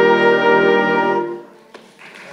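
A brass band plays a loud, sustained final chord in a large hall.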